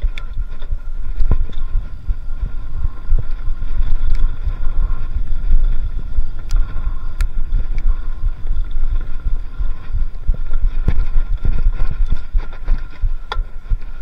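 Bicycle tyres roll over a bumpy dirt trail.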